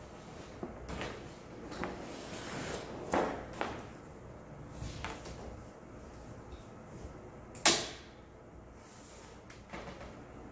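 Large paper rustles and crinkles as it is smoothed and pressed flat.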